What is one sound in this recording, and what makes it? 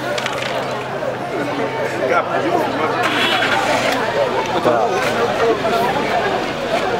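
A crowd of men talk and shout over each other nearby, outdoors.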